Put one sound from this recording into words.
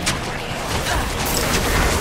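Fiery spells burst and crackle in a battle.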